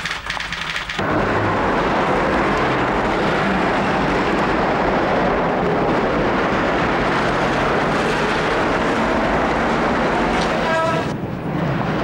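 A crowd murmurs outdoors over steady street noise.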